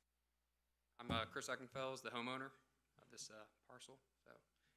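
A young man speaks into a microphone.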